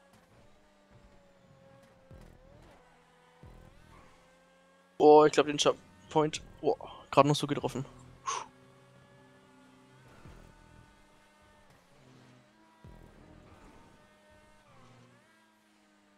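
A racing car engine hums at high speed, its pitch dipping and rising through the bends.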